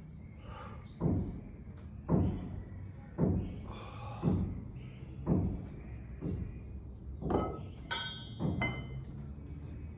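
A man breathes out hard in a steady rhythm, close by.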